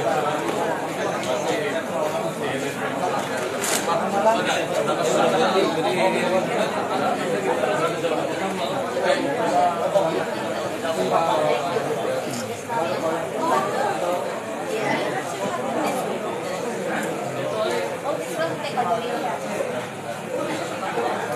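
A man talks into a microphone over a loudspeaker.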